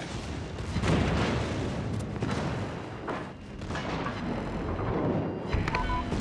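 Shells explode and splash into the water nearby.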